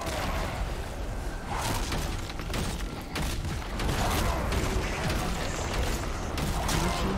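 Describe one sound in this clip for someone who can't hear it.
Spell effects burst and weapons clash in a busy game battle.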